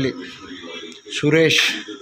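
A television plays nearby.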